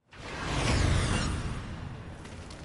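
A burst of flame whooshes.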